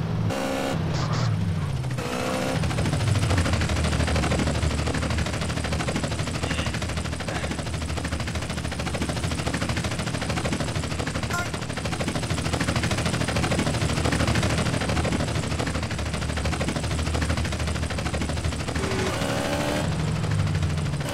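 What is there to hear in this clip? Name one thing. A motorbike engine revs and roars.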